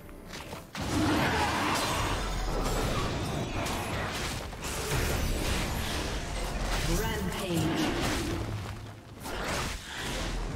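A large beast growls and roars.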